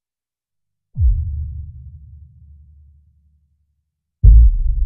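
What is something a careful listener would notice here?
A deep sub-bass boom hits and rumbles slowly away.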